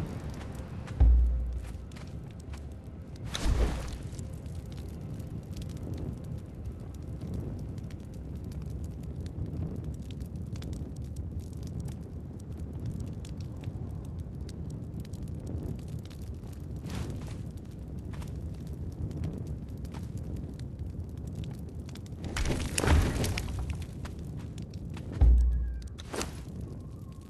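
A game menu clicks and whooshes as it opens.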